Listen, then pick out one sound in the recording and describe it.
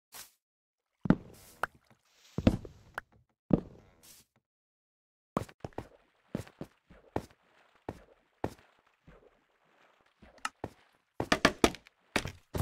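A blocky game plays short thuds and clicks as items are handled and blocks are struck.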